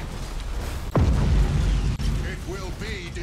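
A deep explosion booms.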